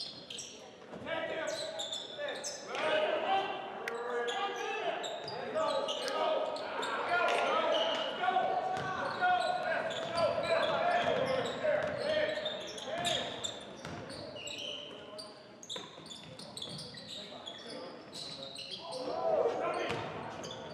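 Young men shout and call out across a large echoing gym.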